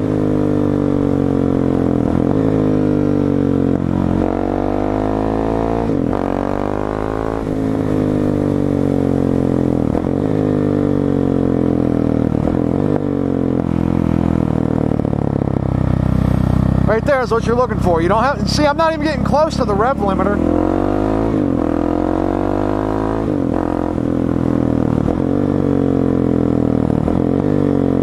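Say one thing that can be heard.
A motorcycle engine drones steadily, its pitch rising and falling as the rider shifts gears.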